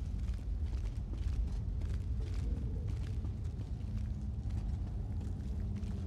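Footsteps patter quickly on stone steps.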